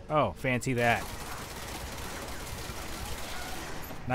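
A pistol fires a rapid string of shots.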